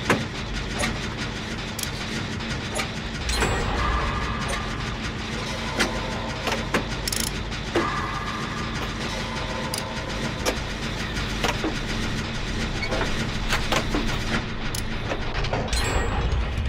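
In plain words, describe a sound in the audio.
Metal parts clatter and clank as a machine is repaired.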